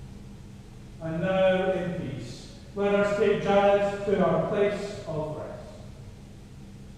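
A man speaks calmly, heard through an online call in an echoing room.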